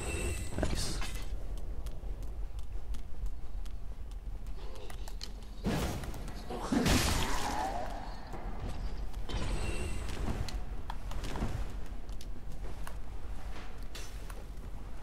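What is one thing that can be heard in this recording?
Armoured footsteps clink and thud steadily.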